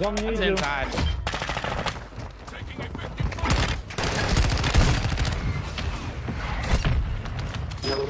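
Rapid gunfire bursts and cracks.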